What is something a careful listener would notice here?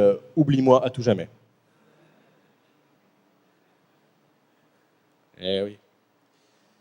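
A man speaks into a microphone with long pauses, heard through loudspeakers.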